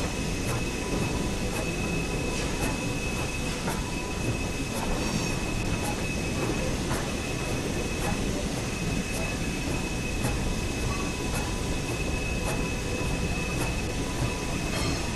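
Train wheels click in a steady rhythm over rail joints.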